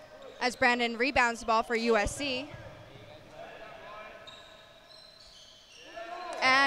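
Sneakers squeak sharply on a gym floor in an echoing hall.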